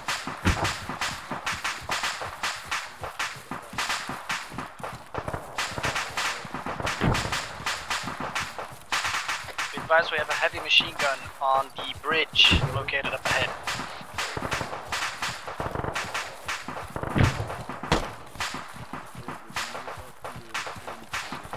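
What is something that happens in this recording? Footsteps swish through tall grass at a steady walking pace.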